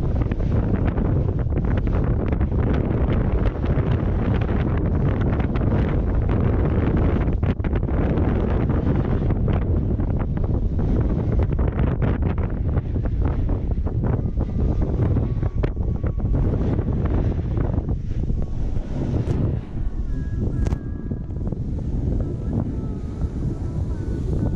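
Wind roars loudly over a close microphone.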